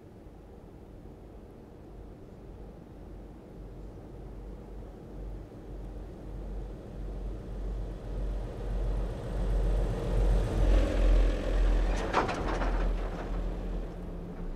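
A truck engine rumbles and grows louder as the truck approaches and passes close by.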